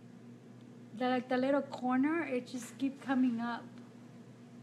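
A woman talks calmly close to the microphone.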